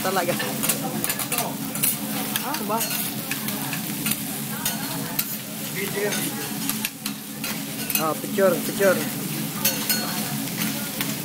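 A crowd of diners chatters in a busy, lively room.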